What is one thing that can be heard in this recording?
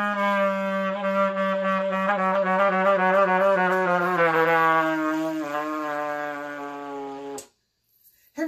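A trumpet plays a sustained melody close by, then stops abruptly.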